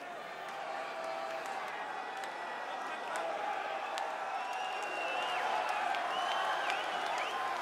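A large crowd cheers and screams loudly in a big echoing hall.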